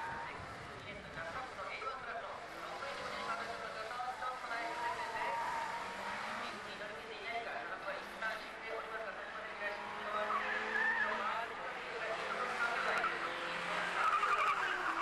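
A small car engine revs and drones.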